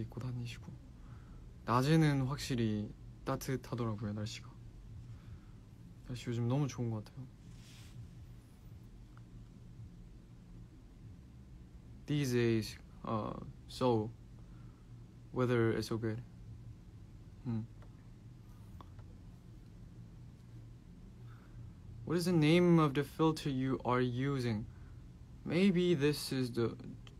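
A young man speaks calmly and close up, in short bursts with pauses.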